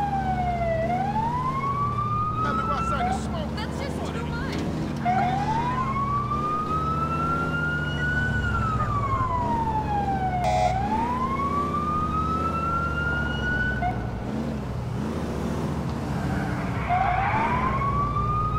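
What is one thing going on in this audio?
A siren wails, rising and falling in long sweeps.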